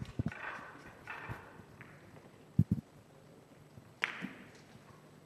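Billiard balls knock together.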